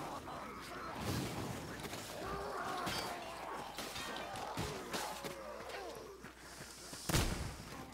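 Blades strike and thud in a close fight.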